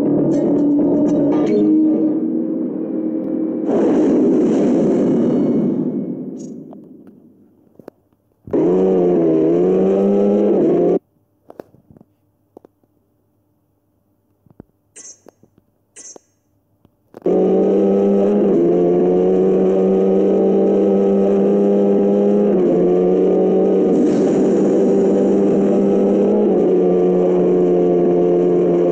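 A racing car engine roars steadily, its pitch shifting as it speeds up.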